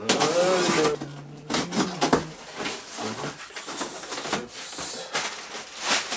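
Cardboard box flaps rustle and scrape.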